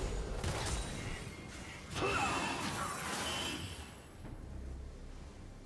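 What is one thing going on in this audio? Magic spells whoosh and crackle in short bursts.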